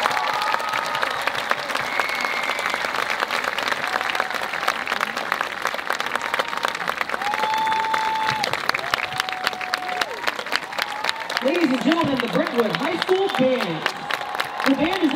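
A large crowd claps and applauds outdoors.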